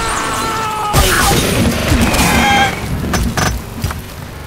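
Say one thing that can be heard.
A crash and clatter of breaking blocks rings out.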